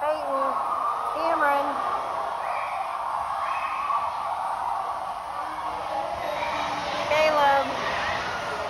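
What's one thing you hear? Children shout and squeal nearby in a large echoing hall.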